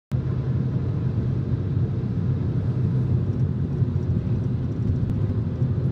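A car rumbles steadily as it drives along a road, heard from inside.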